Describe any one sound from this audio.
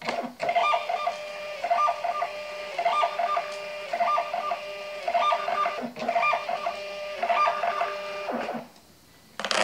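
A label printer whirs and chirps in short repeating bursts as it feeds paper.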